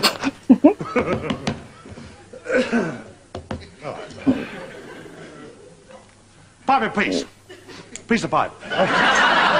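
A woman laughs softly close by.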